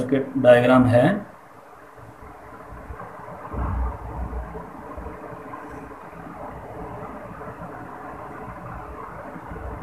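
A marker scratches and squeaks softly on a whiteboard.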